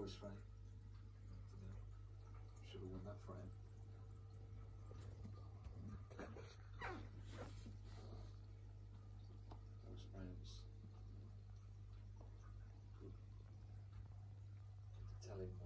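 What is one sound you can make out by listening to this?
An aquarium filter hums.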